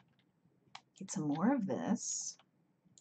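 A woman speaks briefly into a close microphone.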